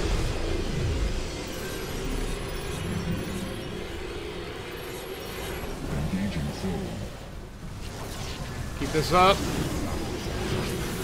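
Laser weapons zap and crackle in a battle.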